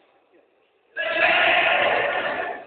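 Young men shout loudly across a large echoing hall.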